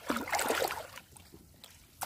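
Water splashes as a net is swept through shallow water.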